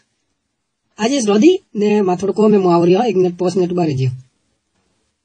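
A young man talks excitedly into a phone.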